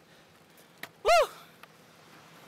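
A young man shouts loudly close by.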